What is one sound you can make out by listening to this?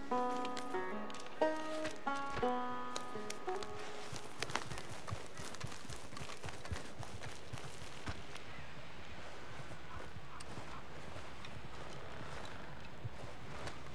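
Plants rustle as a man pulls them from the ground.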